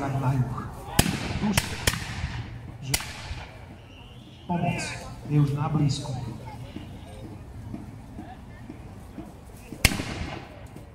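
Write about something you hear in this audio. Muskets fire in sharp, echoing bangs.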